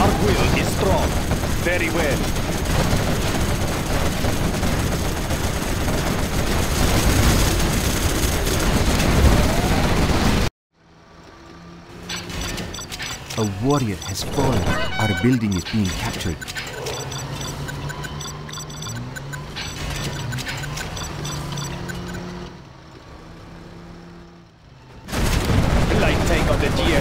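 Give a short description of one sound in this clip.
Explosions boom and rumble in a loud battle.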